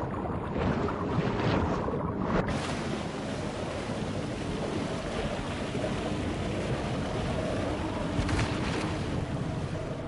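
Murky water rushes and bubbles steadily.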